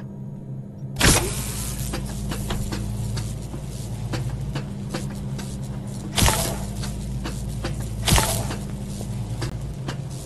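An electric current buzzes and hums steadily.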